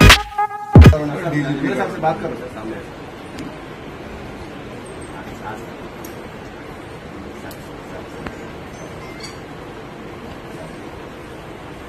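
A man talks calmly into a phone nearby.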